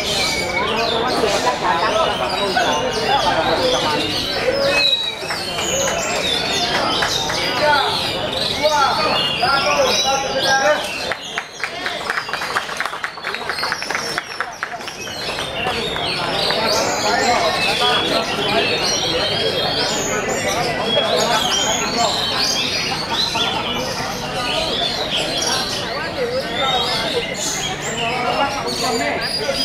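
A caged songbird sings loud, varied whistling phrases close by.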